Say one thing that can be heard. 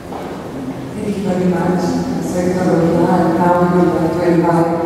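A second woman speaks into a microphone in an echoing hall.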